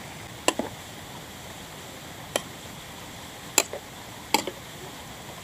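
A metal spoon clinks against a metal pot.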